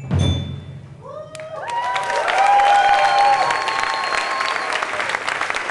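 Electronic keyboard notes ring out and then fade.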